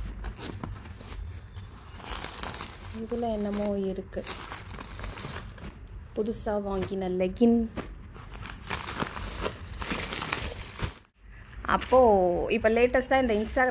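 Clothes and paper bags rustle and crinkle as they are packed.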